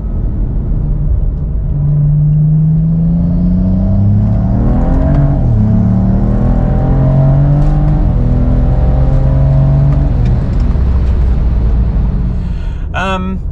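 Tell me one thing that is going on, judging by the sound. A car engine revs up and down from inside the car.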